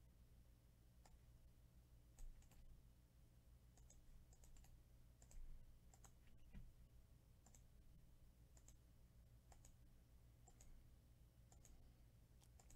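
A computer mouse clicks softly now and then.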